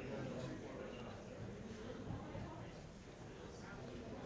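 A large crowd of young men murmurs quietly in an echoing hall.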